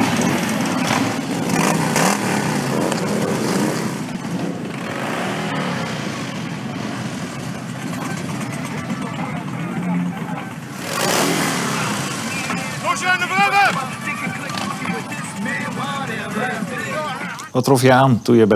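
Motorcycle engines rumble and idle nearby.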